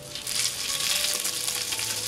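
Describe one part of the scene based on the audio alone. Metal tongs scrape against a griddle.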